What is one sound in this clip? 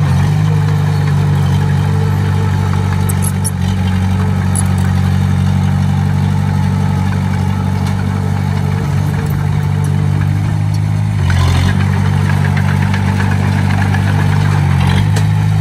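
Dirt and stones scrape and crunch under a bulldozer blade.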